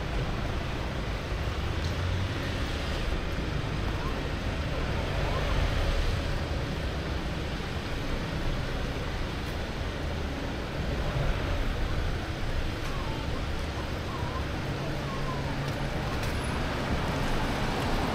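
Tyres hiss on wet pavement as cars pass.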